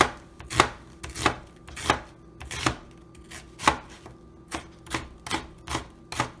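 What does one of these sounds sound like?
A knife chops through onion onto a cutting board in quick, steady knocks.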